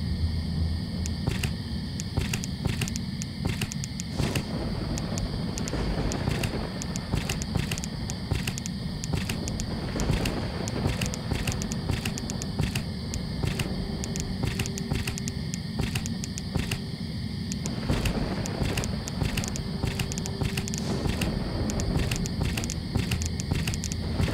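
Stone tiles click softly as they are selected.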